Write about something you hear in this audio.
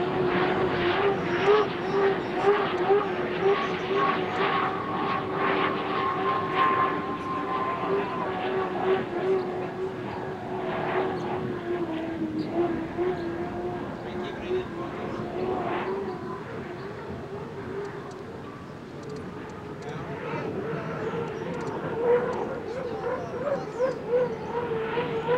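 Water spray hisses behind a speeding boat.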